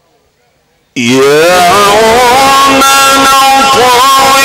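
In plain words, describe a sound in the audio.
A man chants loudly and melodiously through a microphone and loudspeakers.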